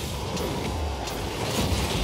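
A rocket boost blasts with a rushing roar.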